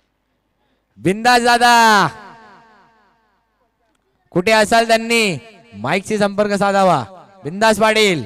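Young men shout and cheer outdoors at a distance.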